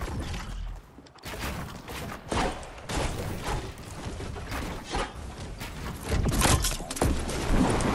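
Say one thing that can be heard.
Wooden walls and ramps are built with quick knocking thuds.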